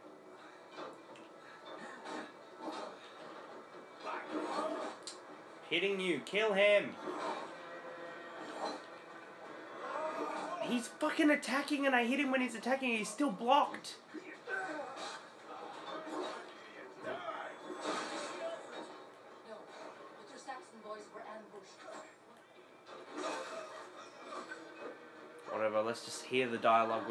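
Game sounds and music play from a television speaker in a quiet room.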